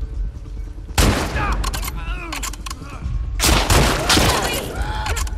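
A gun fires sharp, loud shots.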